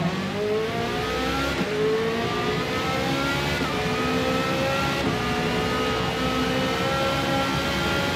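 A racing car engine screams, its pitch rising through each gear and dropping briefly at every gear change.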